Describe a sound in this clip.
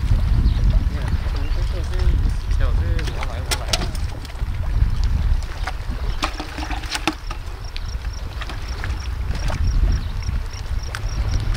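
Waves splash against rocks.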